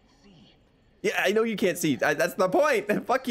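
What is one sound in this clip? A young man talks animatedly, close to a microphone.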